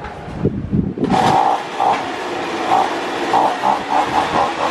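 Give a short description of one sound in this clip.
A leaf blower's engine starts up and roars loudly.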